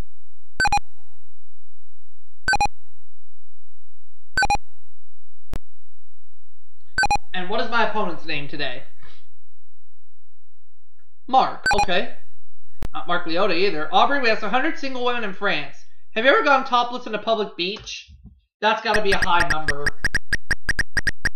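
Short electronic beeps sound now and then, then quickly repeat.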